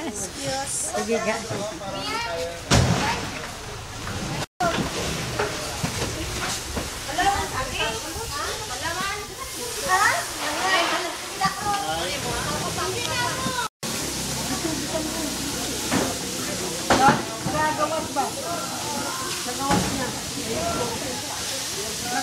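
Several men and women chatter nearby in a busy, echoing hall.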